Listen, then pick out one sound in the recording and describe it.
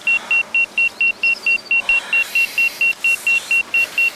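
A young man yawns and groans sleepily.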